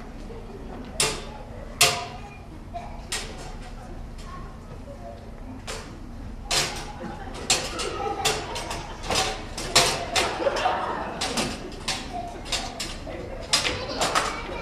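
A metal folding chair clatters and knocks against a wooden floor.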